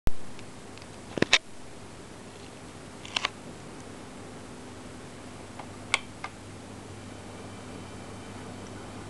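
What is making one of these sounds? Surface noise from a spinning record crackles and pops.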